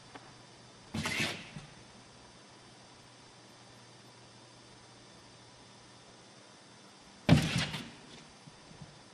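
A cat leaps and thumps its paws against a wall.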